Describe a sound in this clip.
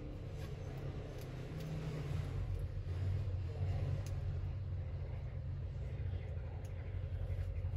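Small plastic parts click and tap softly as they are handled.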